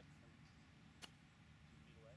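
A golf club chips a golf ball off grass with a sharp click.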